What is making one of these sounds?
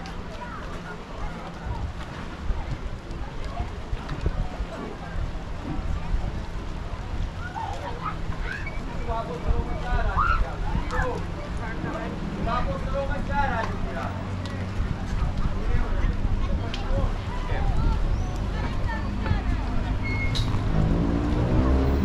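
Wind blows in loud, low, rumbling gusts outdoors.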